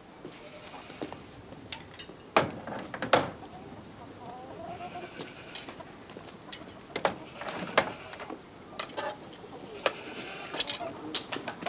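Metal tools clank and knock against each other.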